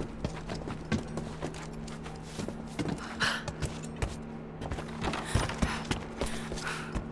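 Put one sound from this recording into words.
Footsteps thud on wooden boards and stairs.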